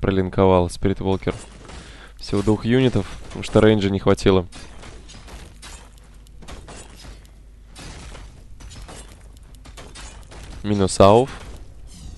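Swords and weapons clash in a battle.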